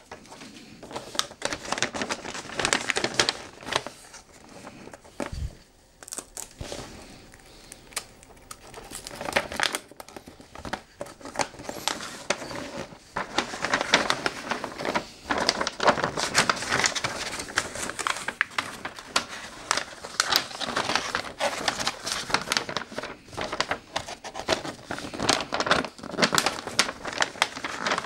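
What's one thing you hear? Wrapping paper crinkles and rustles close by as it is folded around a box.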